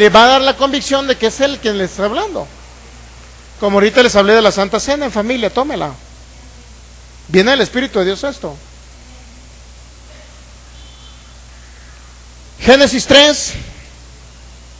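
A man speaks with animation into a microphone, heard through loudspeakers in a bare, echoing room.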